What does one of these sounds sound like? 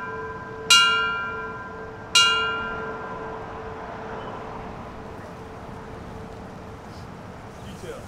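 A bell rings twice, each stroke ringing out and slowly fading.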